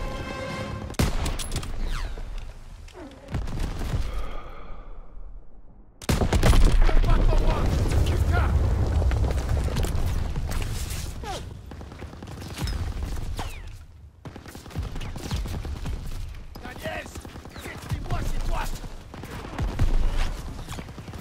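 Rifle shots crack sharply now and then.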